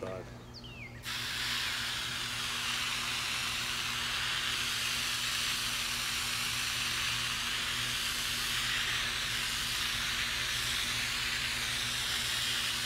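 A hose sprays water onto grass with a steady hiss.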